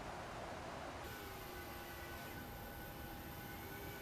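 A jet airliner's engines roar with a high whine.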